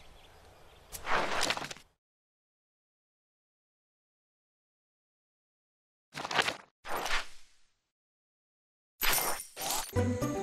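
Game sound effects whoosh.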